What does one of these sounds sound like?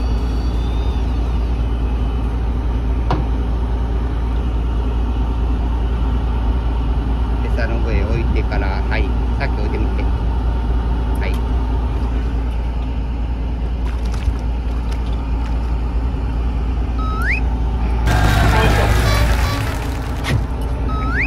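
A boat engine hums steadily.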